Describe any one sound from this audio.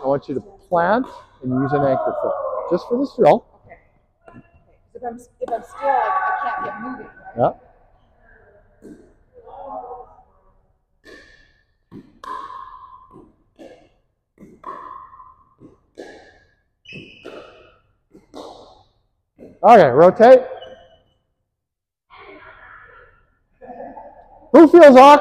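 A man speaks loudly and with animation close by, in an echoing hall.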